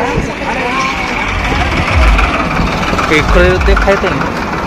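A tractor engine rumbles nearby.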